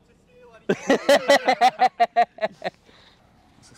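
A man laughs loudly nearby.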